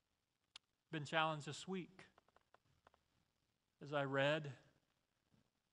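A middle-aged man speaks calmly into a microphone in a large room.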